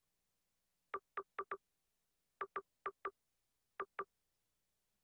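Short soft menu beeps tick in quick succession.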